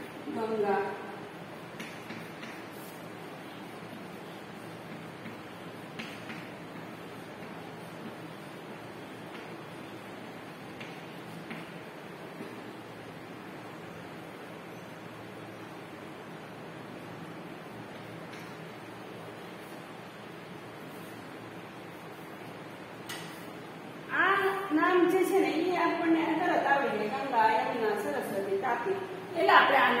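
A woman speaks clearly nearby, as if explaining to a class.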